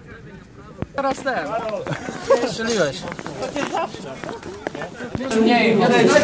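Young men talk and laugh excitedly close by.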